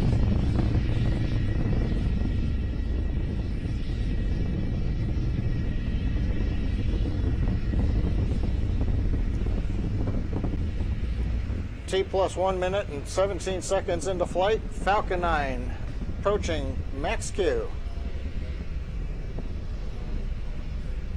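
A rocket engine rumbles steadily in the distance.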